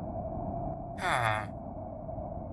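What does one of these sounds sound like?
A game villager creature makes a short nasal grunt that drops in pitch.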